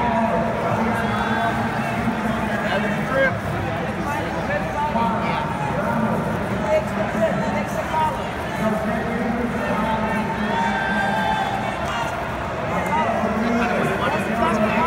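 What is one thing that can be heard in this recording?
A crowd chatters and calls out throughout a large echoing hall.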